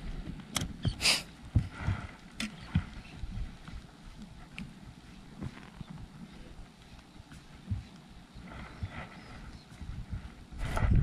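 Water splashes against a small boat's hull.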